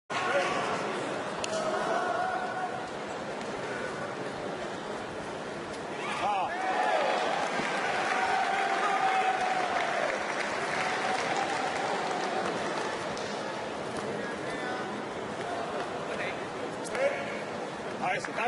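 A crowd in a large echoing hall murmurs and shouts throughout.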